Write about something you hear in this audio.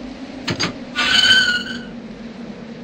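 A metal gate creaks open with a high, drawn-out squeal.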